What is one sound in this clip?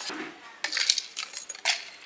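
A spoon scrapes and clinks against a plastic bottle.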